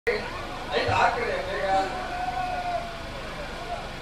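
A crowd of men talk and shout excitedly close by.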